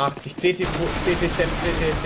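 A rifle fires a burst of shots nearby.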